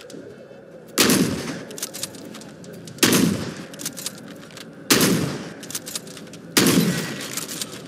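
A gun fires single loud shots, one every two seconds or so, each ringing out.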